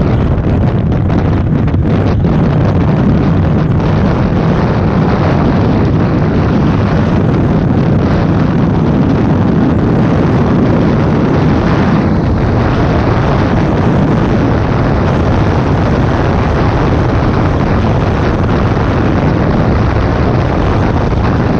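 A scooter engine hums steadily.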